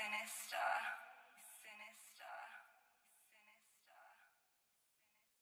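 A young man raps with energy.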